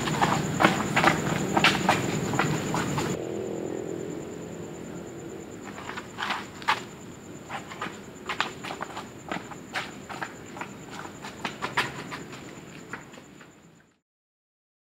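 Footsteps scuffle on paving outdoors at night.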